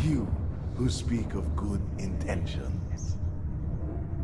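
A man groans in pain up close.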